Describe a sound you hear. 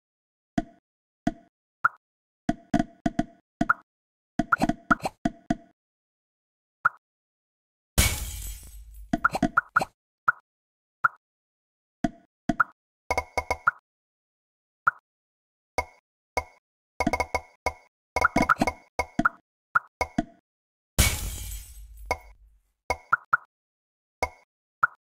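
Short bright game chimes pop again and again as balls merge.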